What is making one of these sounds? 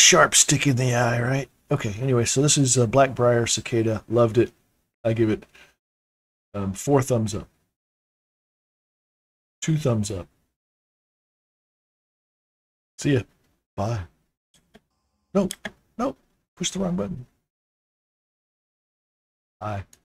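A man talks into a close microphone in bursts, with pauses.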